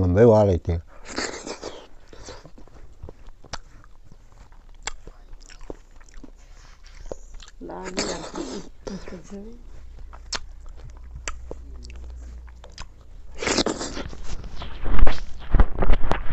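An elderly man slurps and chews food noisily.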